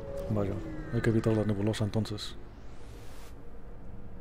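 A spaceship jumps away with a rising whoosh.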